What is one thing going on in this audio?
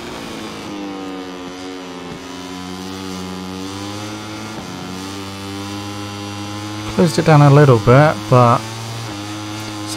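A motorcycle engine whines steadily and shifts pitch through gear changes.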